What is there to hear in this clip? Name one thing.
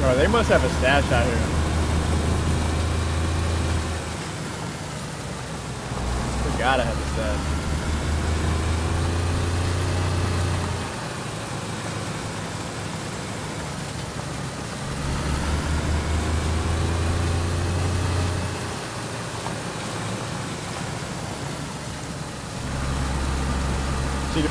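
A car engine hums and revs as it drives slowly along a rough dirt track.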